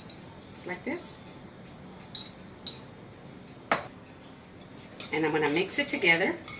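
A spoon scrapes and clinks against a glass bowl while stirring batter.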